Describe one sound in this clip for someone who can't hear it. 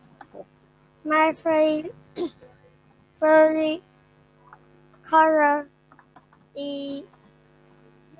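A young boy speaks softly over an online call.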